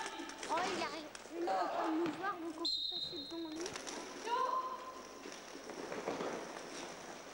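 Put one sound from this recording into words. Young women shout and call out to each other in a large echoing hall.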